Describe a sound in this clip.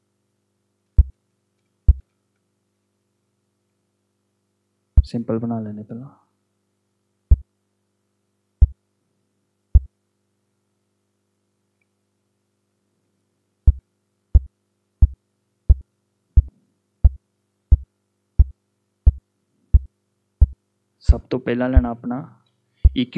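Short, punchy low drum hits play, first singly and then in a steady, quick beat.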